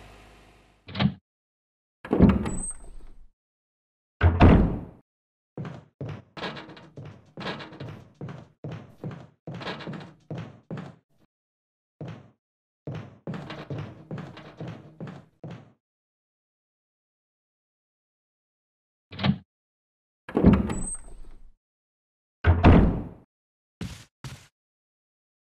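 A heavy wooden door unlatches and creaks open.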